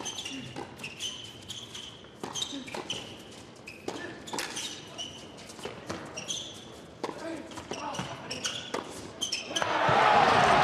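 Tennis balls are struck back and forth with sharp pops.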